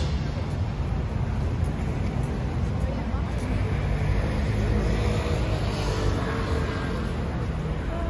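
Traffic rumbles steadily outdoors on a busy street.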